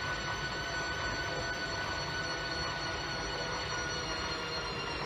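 A washing machine drum spins with a steady whirring hum.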